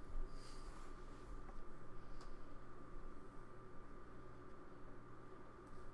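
Plastic game pieces click and slide on a tabletop.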